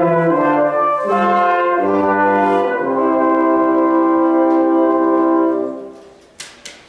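A brass quartet plays a chord-based tune in a reverberant hall, then stops.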